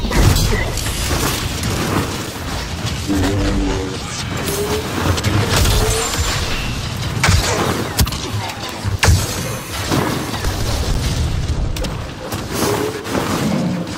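A lightsaber hums and whooshes as it swings.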